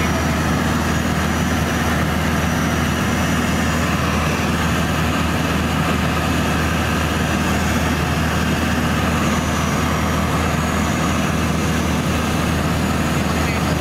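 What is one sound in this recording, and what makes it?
A small plane's propeller engine drones steadily and loudly.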